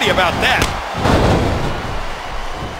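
A body slams onto a wrestling mat.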